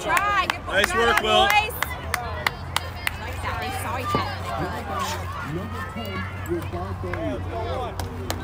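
Young girls shout and cheer outdoors.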